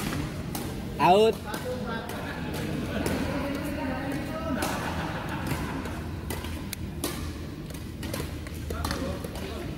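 Men talk and laugh.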